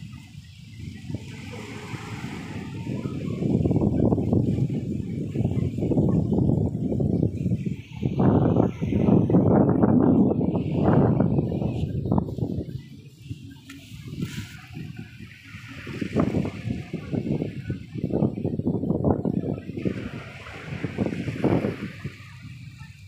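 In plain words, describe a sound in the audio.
Gusts of wind rumble loudly and unevenly outdoors.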